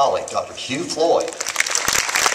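A man speaks to an audience over a loudspeaker.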